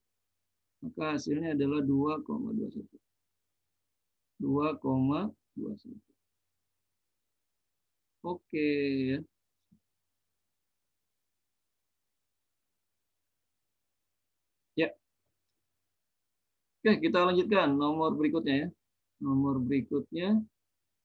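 A man speaks calmly into a close microphone, explaining in pauses.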